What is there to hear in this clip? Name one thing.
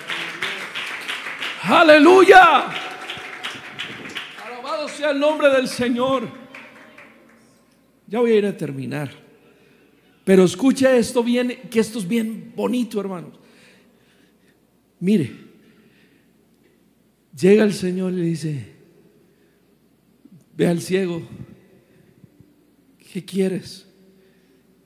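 A man speaks with feeling into a microphone, pausing often between phrases.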